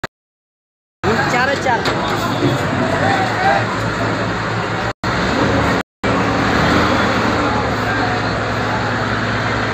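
A crane engine rumbles steadily.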